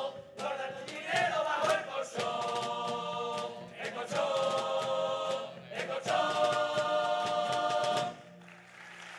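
A group of men sings loudly in harmony through microphones.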